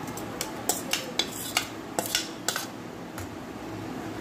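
A metal spoon scrapes and clicks against a steel pot.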